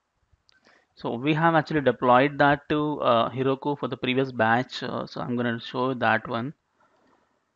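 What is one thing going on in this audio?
A young man speaks calmly and close into a headset microphone.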